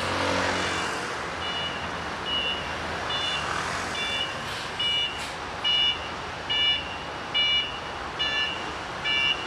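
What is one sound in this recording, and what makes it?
A bus engine idles close by.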